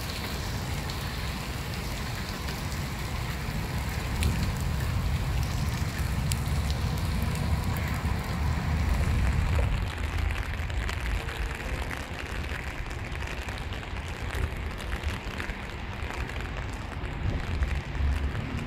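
Wind blows, rumbling against the microphone.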